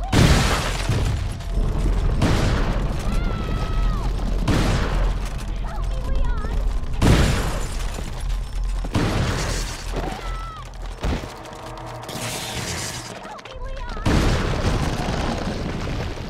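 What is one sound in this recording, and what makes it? A shotgun fires loud, booming blasts again and again.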